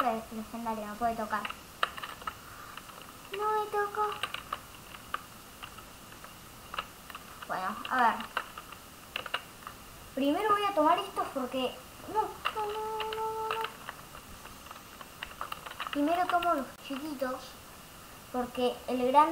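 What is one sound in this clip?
A child talks close into a headset microphone.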